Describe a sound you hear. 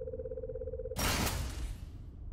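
A loud electronic whoosh sounds and fades.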